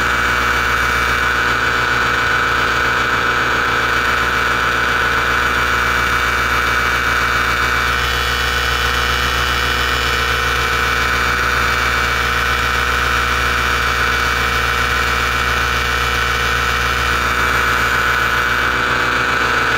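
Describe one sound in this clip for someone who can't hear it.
A motor drones steadily and loudly close by.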